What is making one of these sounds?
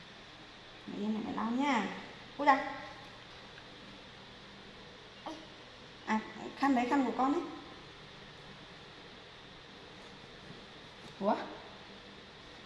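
A young woman speaks softly and gently close by.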